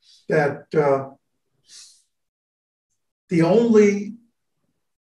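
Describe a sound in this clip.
An elderly man speaks calmly over an online call, heard through a microphone.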